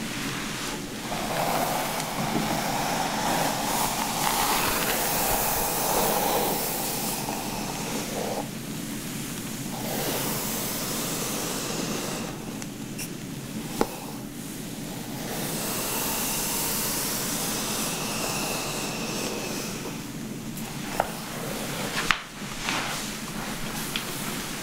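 A brush swishes softly through long hair, close up.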